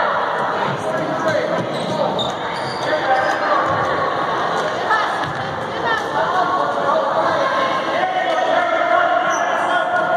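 A crowd of spectators chatters and calls out in an echoing gym.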